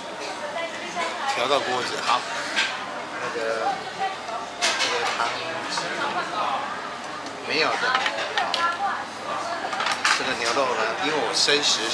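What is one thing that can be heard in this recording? A middle-aged man talks casually and close by.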